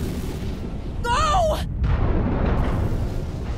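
A young woman shouts urgently.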